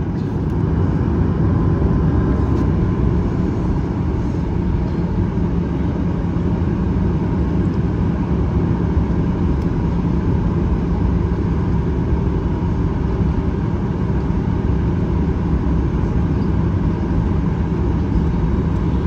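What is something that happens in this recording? A jet engine hums and roars steadily, heard from inside the cabin.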